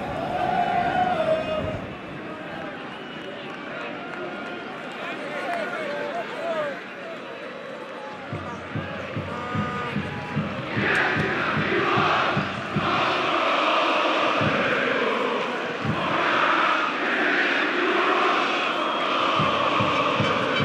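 A large stadium crowd chants and cheers, growing louder.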